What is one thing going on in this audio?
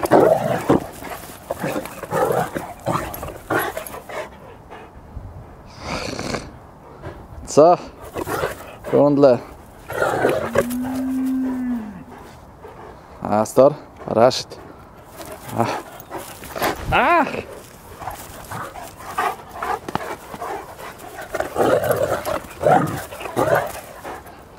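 Dogs growl and snarl while play-fighting up close.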